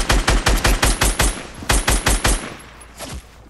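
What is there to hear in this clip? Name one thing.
Rapid gunshots fire in a video game.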